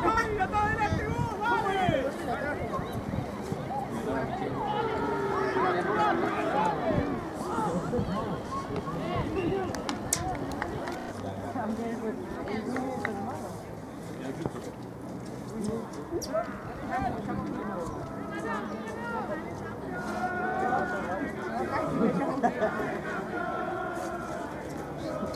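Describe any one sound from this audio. Young men shout and call out to each other outdoors across an open field.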